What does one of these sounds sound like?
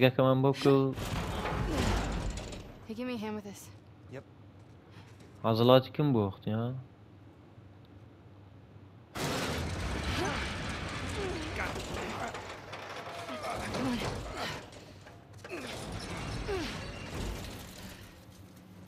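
A metal roller shutter rattles and scrapes as it is lifted.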